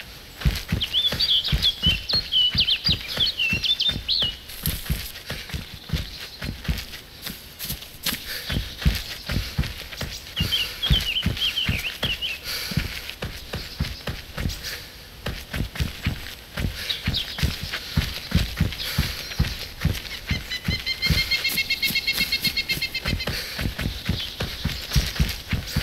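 Footsteps tramp quickly through grass and leaves.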